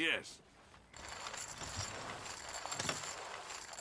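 Poker chips clink and clatter.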